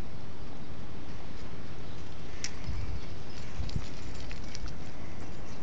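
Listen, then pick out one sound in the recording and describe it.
Dogs' paws scuffle and crunch on dry leaves and twigs.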